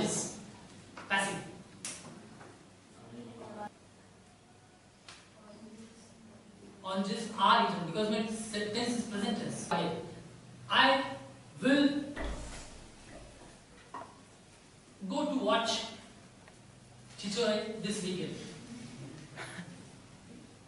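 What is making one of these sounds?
A middle-aged man speaks nearby in a lecturing voice, with pauses.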